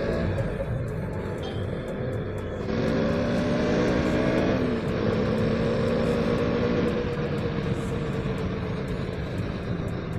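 A motorcycle engine hums and revs steadily up close.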